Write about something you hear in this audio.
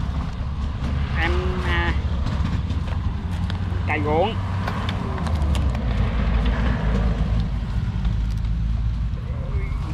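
A paper sack rustles.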